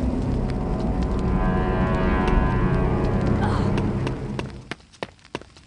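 A heavy stone gate grinds and rumbles open.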